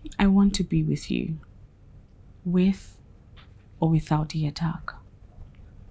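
A woman speaks quietly and earnestly up close.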